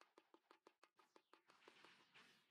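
Quick, light footsteps patter on hard ground.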